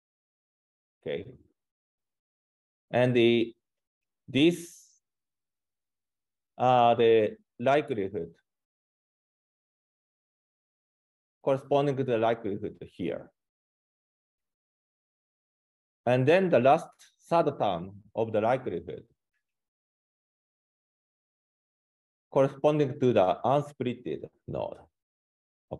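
A man speaks calmly and haltingly into a close microphone, with long pauses.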